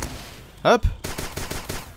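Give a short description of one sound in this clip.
A laser gun fires with a short zap.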